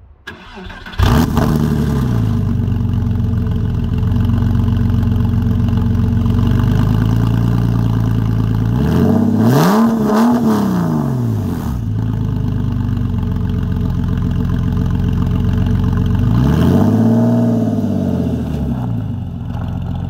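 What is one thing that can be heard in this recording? A sports car engine idles with a deep rumble and revs up and down twice.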